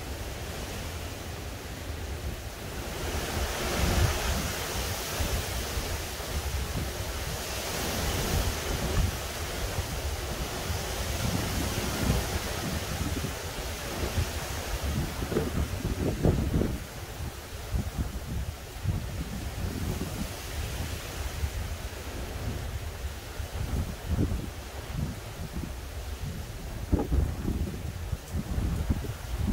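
Wind gusts outdoors and rustles the leaves of trees.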